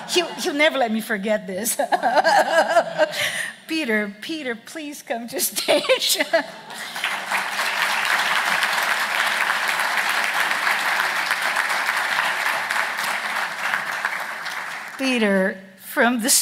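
A woman speaks through a microphone in a large room.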